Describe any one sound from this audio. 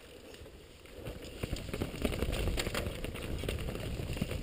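Bike tyres rumble over a rough dirt trail.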